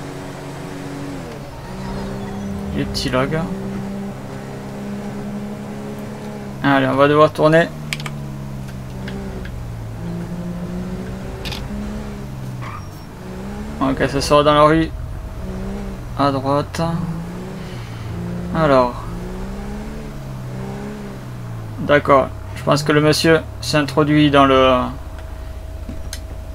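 A van engine hums, speeding up and slowing as it drives.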